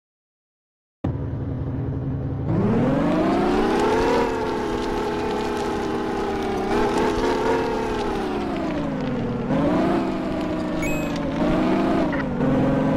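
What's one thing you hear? A car engine hums and revs up and down steadily.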